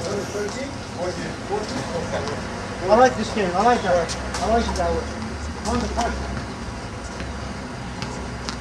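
A ball smacks against a wall and bounces on the court.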